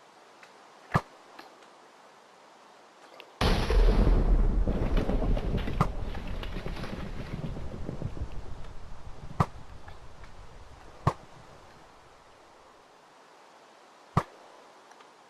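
A bow twangs sharply as arrows are shot, several times.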